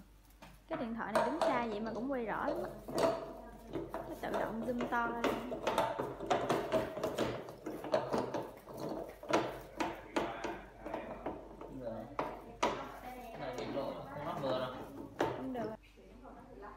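A plastic brush disc knocks and clicks against a floor scrubber.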